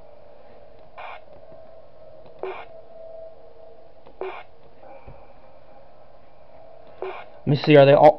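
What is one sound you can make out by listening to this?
Short electronic clicks sound now and then.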